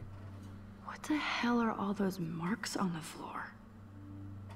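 A young woman speaks quietly and wonders aloud.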